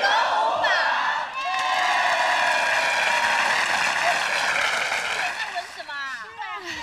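A large crowd of young people cheers and screams loudly.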